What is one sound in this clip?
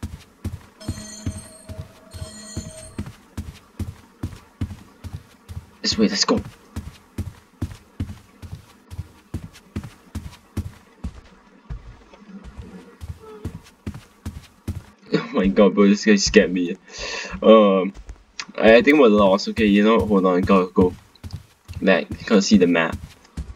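Footsteps thud at a steady walking pace on a hard floor.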